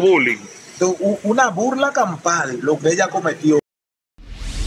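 A man speaks emphatically into a microphone close by.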